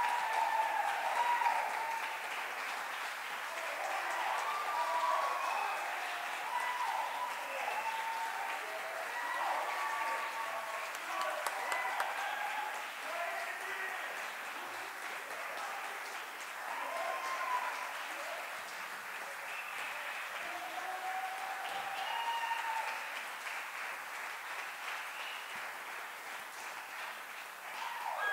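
A woman sings in a high voice in a large echoing hall.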